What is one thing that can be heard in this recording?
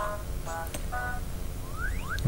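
A short electronic jingle plays.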